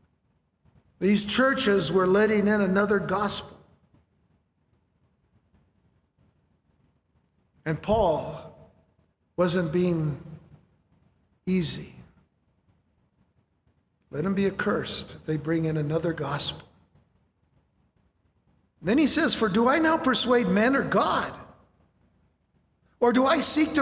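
A middle-aged man speaks earnestly into a microphone, with pauses between phrases.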